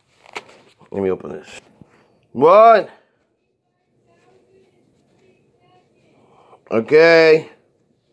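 Soft fabric rustles as hands handle socks.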